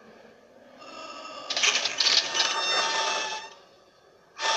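A heavy wooden door creaks slowly open.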